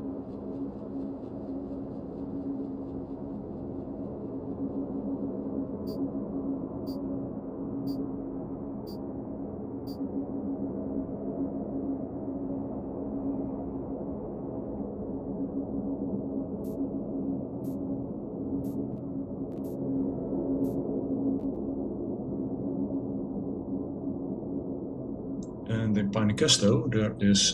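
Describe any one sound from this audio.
A spaceship's engine hums with a low, steady drone.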